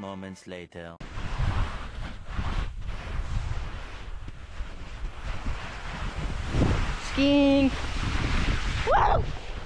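Wind rumbles on the microphone outdoors.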